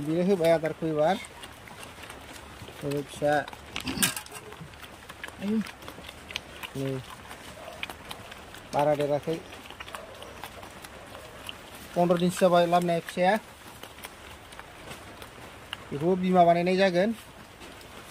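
A pig grunts and squeals in short bursts.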